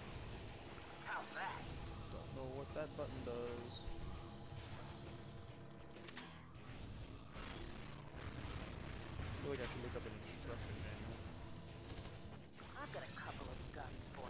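A man talks with animation through a microphone, close by.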